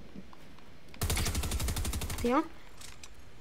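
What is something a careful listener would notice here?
A gun fires rapidly in a video game.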